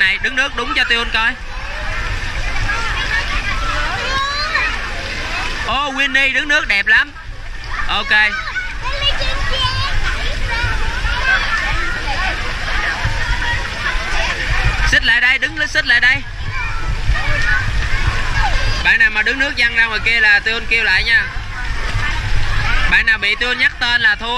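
Children chatter and shout.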